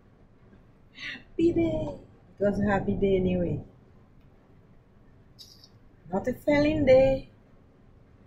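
An older woman speaks with animation, close by.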